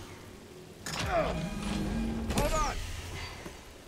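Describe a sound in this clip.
A heavy metal clamp rumbles and clanks as it moves.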